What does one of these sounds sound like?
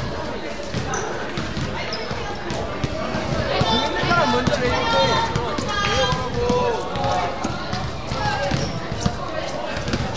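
Young men chatter and call out in a large echoing gym.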